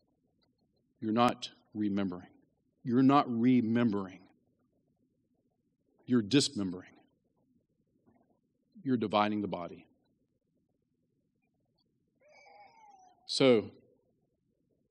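A man speaks with animation through a microphone, with pauses between phrases.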